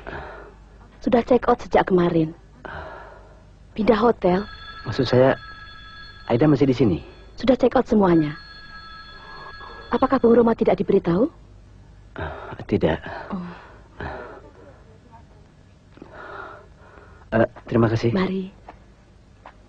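A man speaks in a conversational tone.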